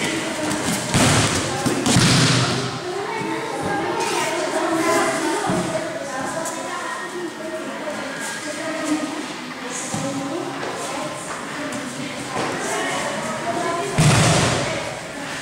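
Bodies thud heavily onto a padded mat.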